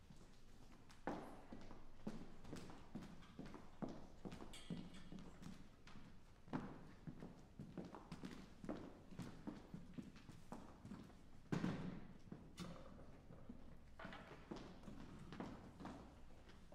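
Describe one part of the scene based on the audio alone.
Footsteps knock on a wooden stage.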